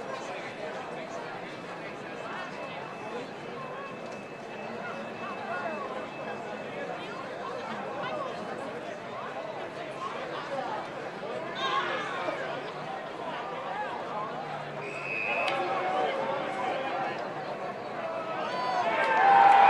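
Men shout to each other on a playing field.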